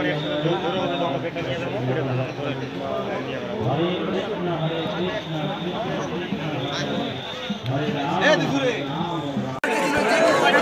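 Voices murmur nearby in a quieter space.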